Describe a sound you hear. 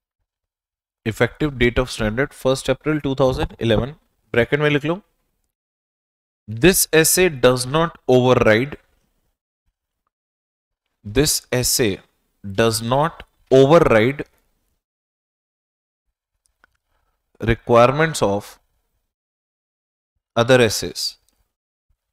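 A man lectures into a close microphone, speaking in short bursts with pauses.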